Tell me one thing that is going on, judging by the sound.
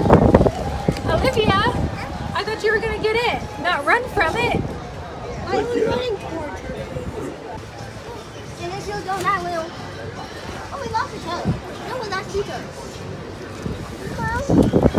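A small child babbles in a high voice close by.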